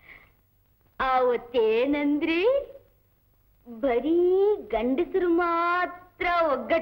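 A young woman sings a melody.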